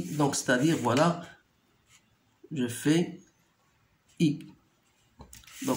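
A pen scratches along a ruler on paper.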